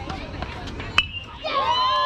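A metal bat cracks sharply against a baseball.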